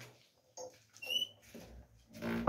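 A wooden door creaks as it swings open.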